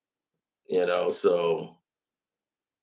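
A man speaks briefly and calmly, close to the microphone.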